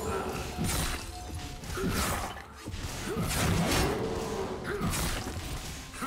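Game spell effects crackle and whoosh in quick bursts.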